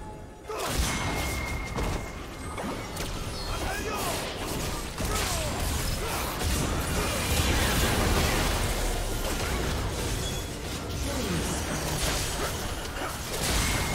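Game spell effects crackle, whoosh and thud during a fight.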